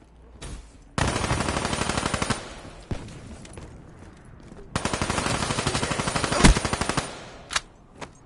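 A rifle fires rapid bursts of automatic shots.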